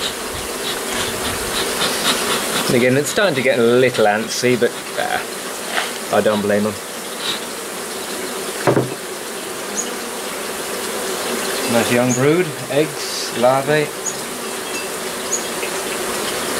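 Bees buzz steadily in a dense swarm close by.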